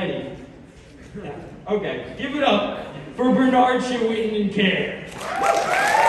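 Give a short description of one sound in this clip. A young man speaks with animation into a microphone, heard through loudspeakers in a large echoing hall.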